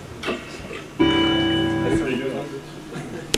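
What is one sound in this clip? An electronic keyboard plays a sustained chord.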